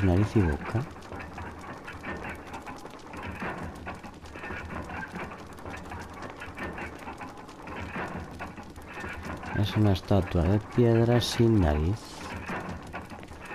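A fire crackles softly nearby.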